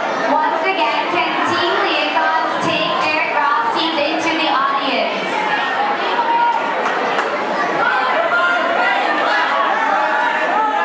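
A large crowd of men and women chatters and calls out loudly in an echoing hall.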